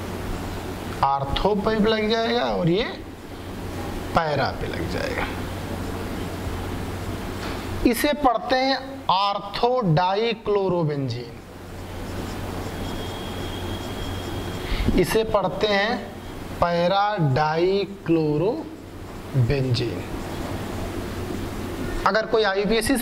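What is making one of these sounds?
A young man speaks calmly and explains, close by.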